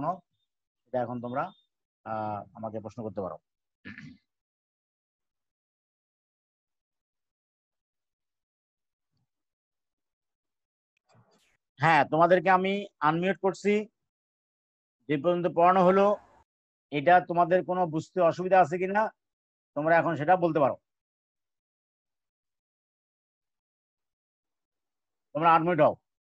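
A man speaks calmly through an online call, reading out in bursts with pauses.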